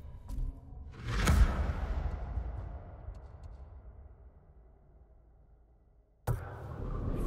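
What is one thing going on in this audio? A deep whoosh swells and slowly fades.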